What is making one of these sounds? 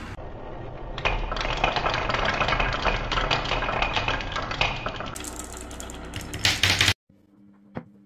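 Marbles clatter together as they pile up at the bottom of the run.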